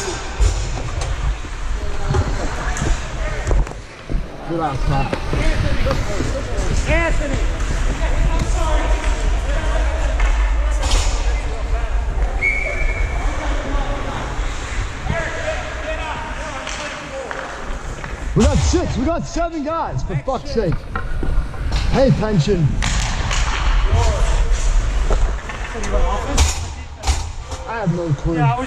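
Ice skates scrape and glide over ice close by.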